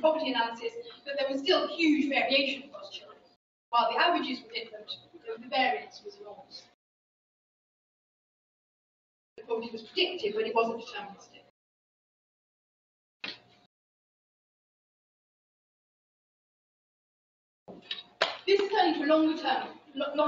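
A woman lectures calmly through a microphone, with pauses between phrases.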